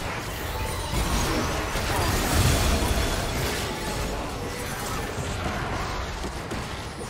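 Magic spell effects whoosh and burst in a fast fight.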